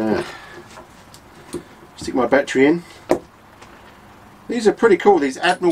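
An older man talks calmly close to a microphone.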